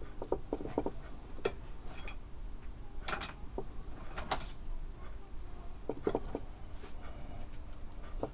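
A wooden block scrapes and knocks against a knife blade.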